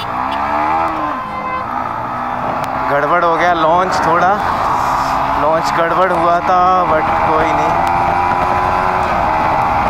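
A motorcycle engine revs loudly and rises in pitch as the rider speeds up.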